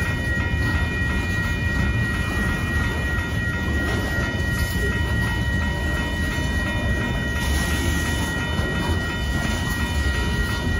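A freight train rumbles past close by, wheels clattering on the rails.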